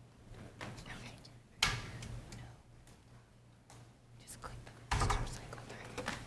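A woman speaks quietly near a microphone in an echoing hall.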